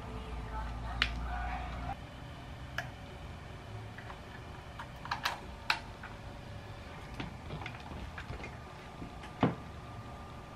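Plastic devices knock lightly as they are handled and set down.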